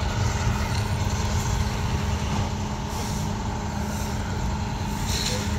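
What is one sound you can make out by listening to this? A tow truck engine idles with a low, steady rumble.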